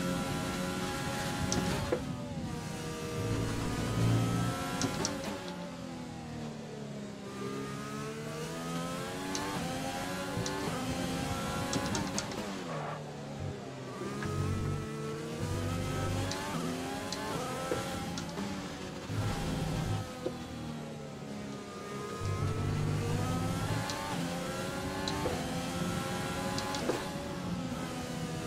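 A racing car engine screams at high revs, rising and dropping in pitch as it shifts gears and brakes.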